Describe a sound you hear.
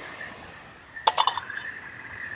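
A metal lid clinks on a pot.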